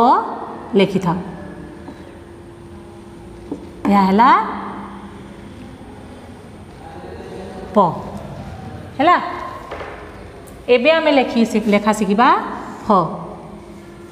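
A woman speaks in a clear, teacherly voice in short bursts.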